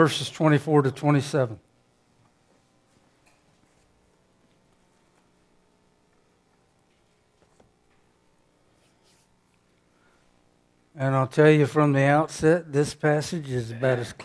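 A middle-aged man speaks calmly into a microphone, pausing between phrases.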